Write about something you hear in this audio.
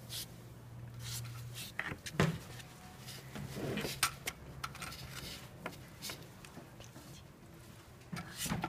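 A metal connector clicks and scrapes as it is screwed onto a socket.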